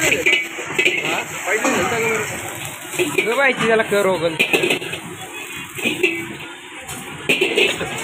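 A metal spatula scrapes and clatters against a wok.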